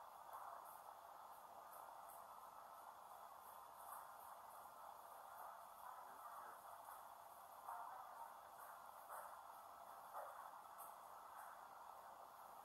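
Rain patters steadily against a window glass.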